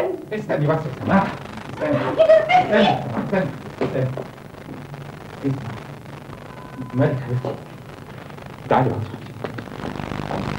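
A man speaks urgently, close by.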